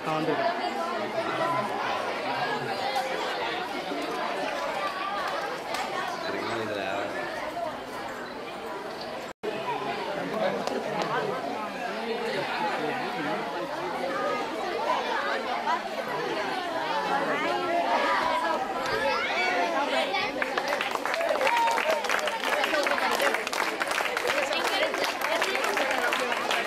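A large crowd of children and adults chatters outdoors.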